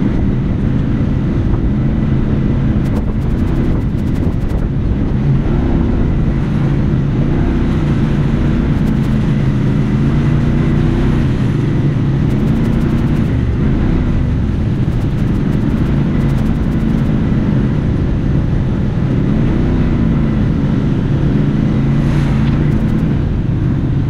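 An off-road vehicle's engine roars steadily close by, rising and falling as it drives.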